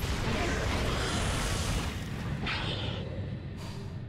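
An icy magical blast roars and crackles, then fades away.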